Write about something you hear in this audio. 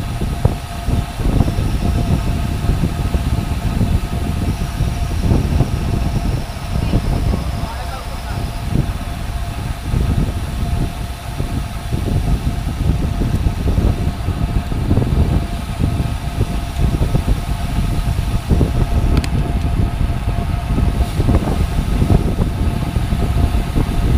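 Wind rushes loudly past, as if outdoors while riding.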